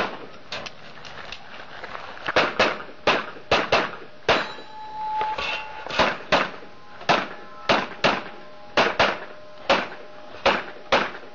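Pistol shots ring out outdoors in quick pairs, echoing sharply.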